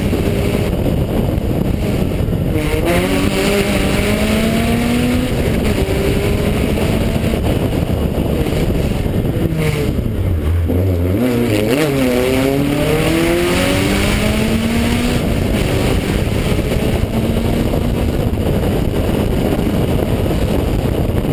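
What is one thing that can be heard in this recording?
Wind rushes past a speeding car.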